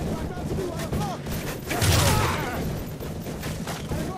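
Rifle shots crack loudly at close range.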